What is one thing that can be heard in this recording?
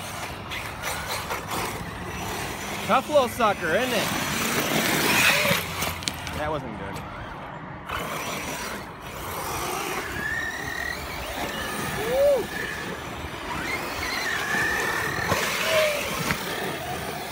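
A small remote-control car's electric motor whines and revs.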